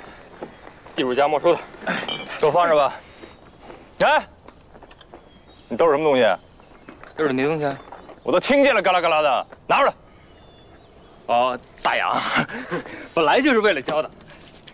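A man speaks firmly and loudly outdoors.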